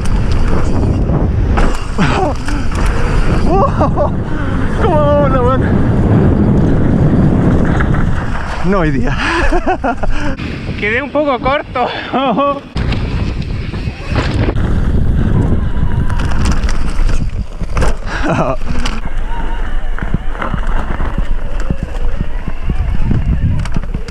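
Knobby bike tyres crunch and skid over a dirt trail.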